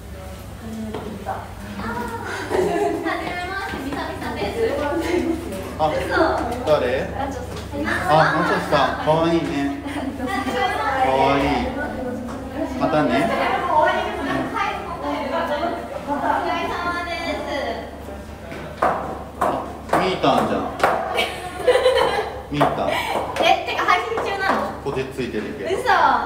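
A young man talks close by, at an even pace.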